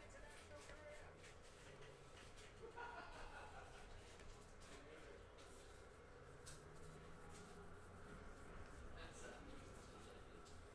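Trading cards flick and rustle as hands shuffle through them.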